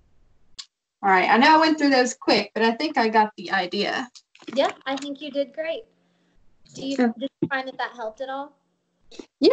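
A young woman talks casually over an online call.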